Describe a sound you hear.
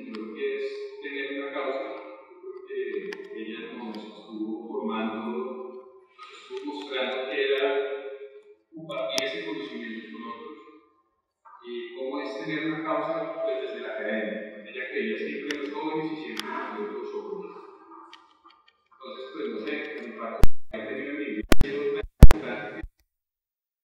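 A man speaks with animation over an online call, heard through a loudspeaker in an echoing hall.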